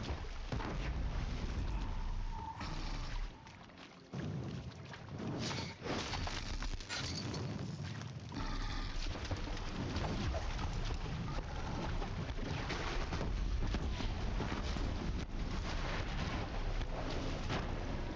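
Arrows whoosh and strike in a video game fight.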